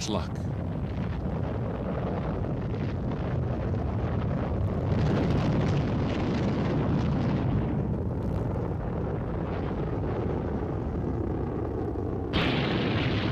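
A rocket engine roars loudly at liftoff.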